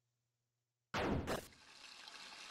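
A soft thud sounds.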